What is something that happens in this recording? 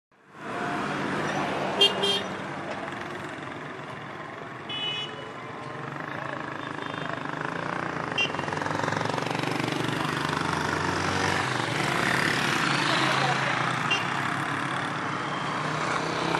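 Vehicle engines hum and tyres roll along a road.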